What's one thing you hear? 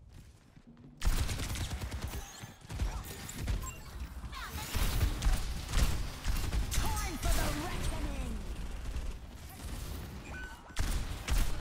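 Guns fire in rapid bursts of loud shots.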